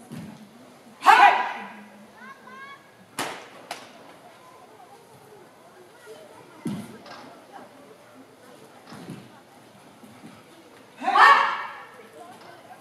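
Several young women shout sharply together in an echoing hall.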